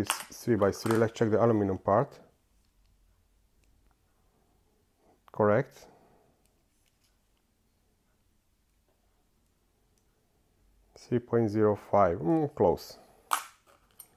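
Small metal pieces clink together in a plastic box.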